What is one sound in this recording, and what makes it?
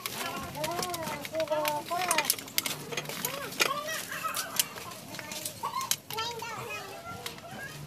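Small metal engine parts click and clink as a hand handles them.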